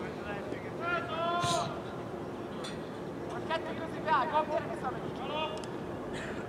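Young men shout to one another in the distance outdoors.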